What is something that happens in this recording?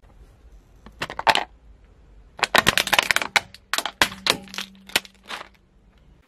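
A car tyre crushes a plastic shell, which snaps and shatters.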